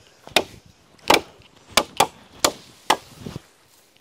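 A machete chops into wood with sharp knocks.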